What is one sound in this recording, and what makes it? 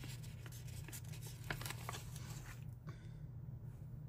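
Paper pages flip and slap softly.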